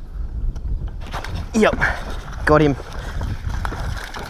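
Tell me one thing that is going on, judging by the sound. A fish splashes at the surface of the water.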